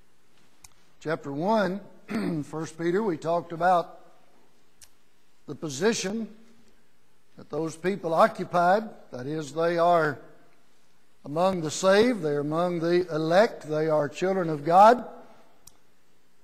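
An older man speaks steadily through a microphone in a reverberant hall.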